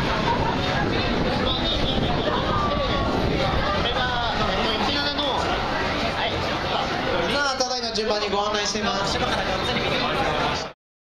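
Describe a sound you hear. A crowd of men murmurs and chatters in a busy room.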